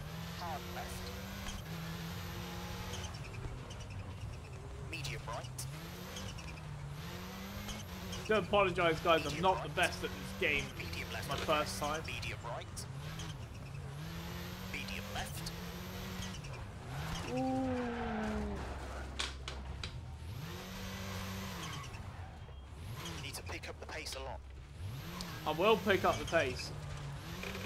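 A rally car engine roars, revving up and down with gear changes.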